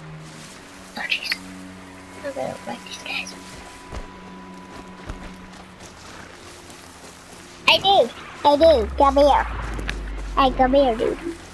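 Footsteps run over dry ground and brush.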